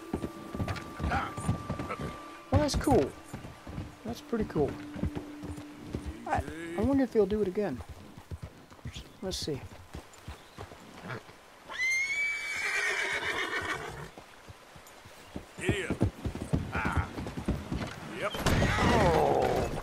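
A horse's hooves thud on a wooden bridge.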